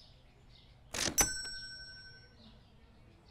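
A bright electronic chime rings out and fades.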